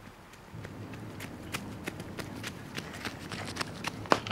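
A bowler's feet thud on the ground as he runs in.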